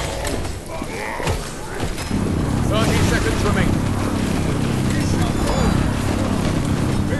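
Game battle effects clash and crackle with magic blasts.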